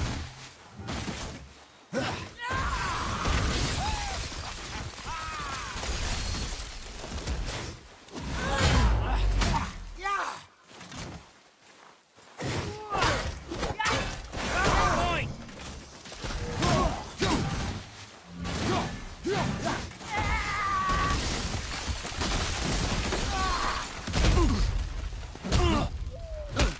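Wind blows through the trees.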